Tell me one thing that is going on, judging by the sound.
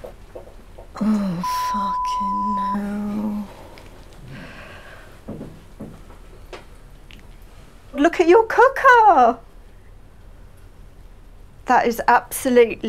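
A woman speaks close by, with feeling.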